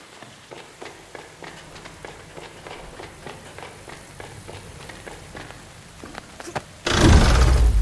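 Quick light footsteps patter steadily.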